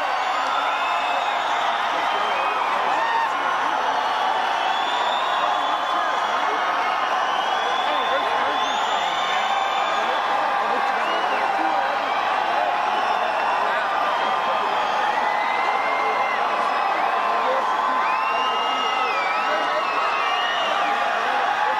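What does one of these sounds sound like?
Fans in a crowd whistle loudly.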